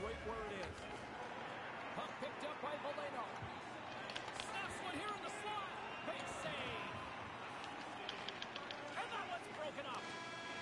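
Ice skates scrape and hiss on ice.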